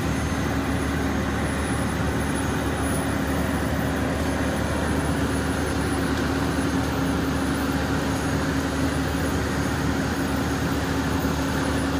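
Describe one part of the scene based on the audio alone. A fire engine's pump motor drones steadily nearby.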